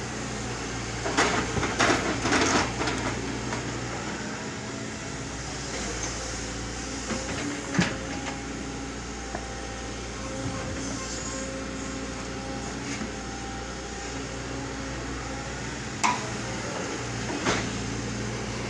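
Rocks and soil knock and scrape under an excavator's bucket.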